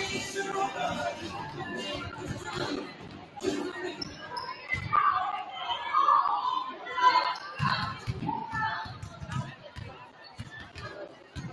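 Basketballs bounce and echo around a large gym.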